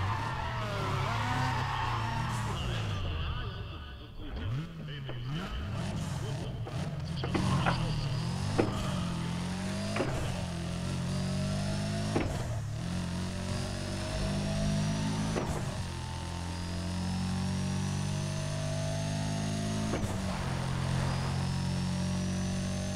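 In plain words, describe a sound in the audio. A racing car engine roars and climbs through the gears.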